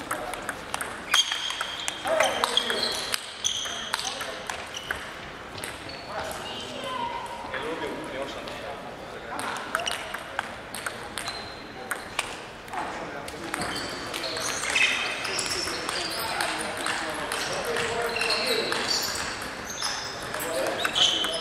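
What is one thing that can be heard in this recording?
A table tennis ball clicks back and forth off paddles and a table, echoing in a large hall.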